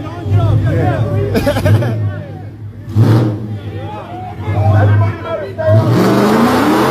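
A small crowd of young people shout and cheer nearby.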